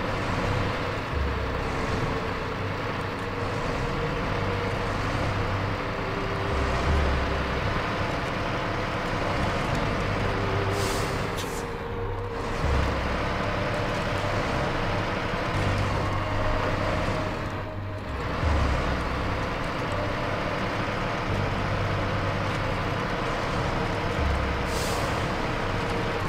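A heavy truck engine rumbles and strains steadily.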